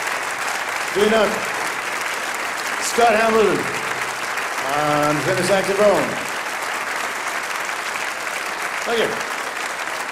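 Audience members cheer and whoop.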